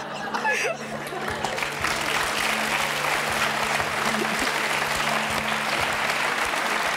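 A studio audience applauds loudly.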